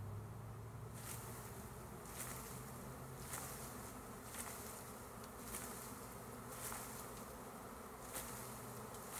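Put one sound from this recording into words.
A bee smoker's bellows puffs in short, repeated bursts.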